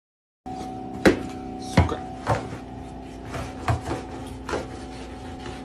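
A metal rod knocks and scrapes against the underside of a refrigerator.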